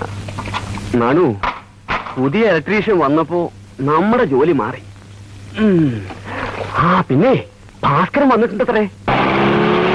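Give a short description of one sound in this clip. A man speaks loudly and with animation.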